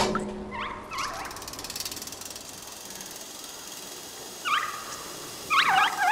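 A metal bucket swings and creaks on a pulley rope.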